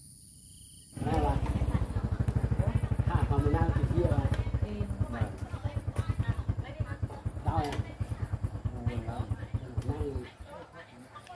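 A motorbike engine putters up close and idles, then cuts off.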